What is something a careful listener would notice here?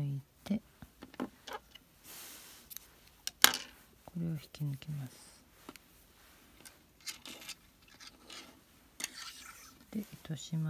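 Yarn rustles softly as it is pulled through knitted fabric.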